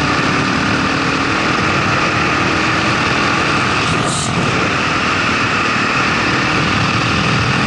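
A single-cylinder dual-sport motorcycle engine thumps along as the bike cruises on an open road.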